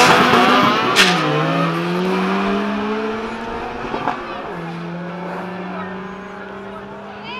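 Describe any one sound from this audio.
A car engine shifts gears and revs, fading into the distance.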